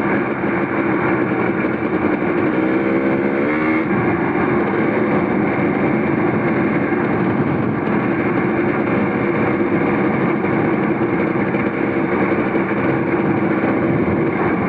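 Tyres rumble over a rough, broken road.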